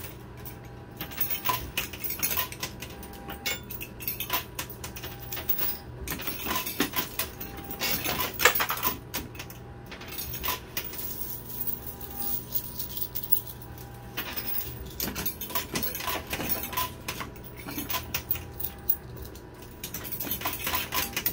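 Coins clink and clatter as a pusher machine shoves them along.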